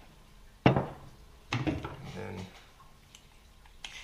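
A small hard object knocks onto a wooden table.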